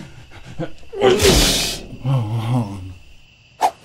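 A man laughs with a wheezy cackle.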